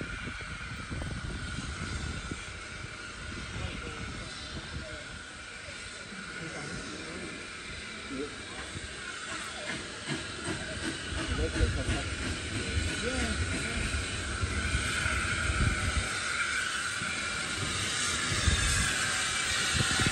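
A steam locomotive chuffs as it approaches and grows louder.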